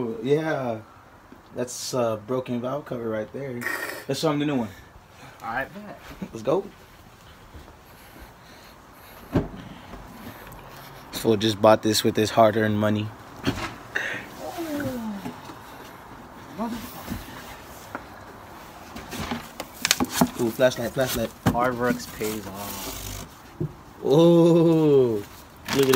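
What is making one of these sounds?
A young man talks close by, casually and with pauses.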